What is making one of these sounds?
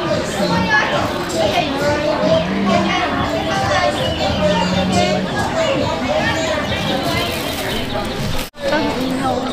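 A plastic bag crinkles and rustles.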